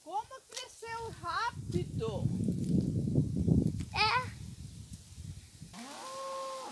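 Dry leaves and twigs crunch underfoot.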